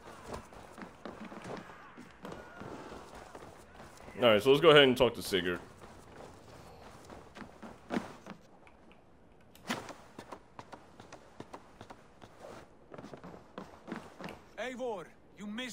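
Footsteps crunch on snow and thud on wooden boards.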